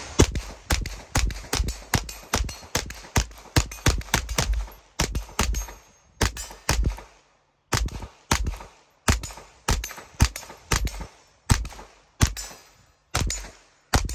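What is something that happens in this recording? A gun fires rapid shots outdoors, each one sharp and loud with a short echo.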